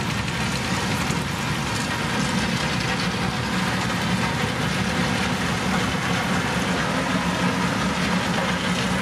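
Heavy road rollers rumble steadily as they drive slowly forward.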